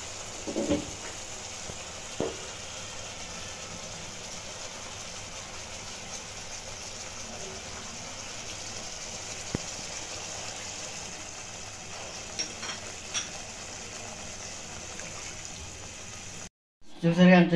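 Thick sauce simmers and sizzles softly in a pan.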